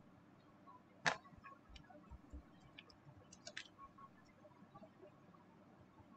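Computer keys click as someone types.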